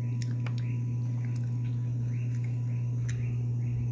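A fork scrapes on a plate.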